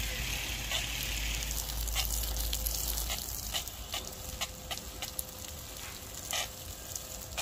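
Rain patters steadily on wet soil and leaves outdoors.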